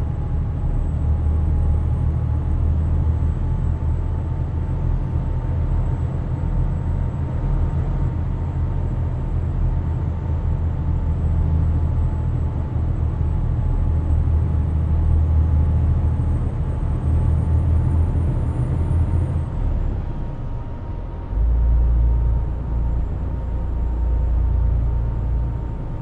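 A truck's diesel engine rumbles steadily while driving.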